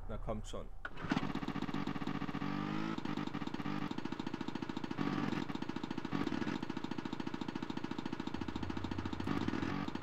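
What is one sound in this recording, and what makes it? A snowmobile engine starts and runs with a steady, rattling buzz.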